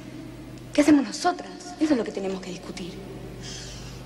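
A young girl sobs.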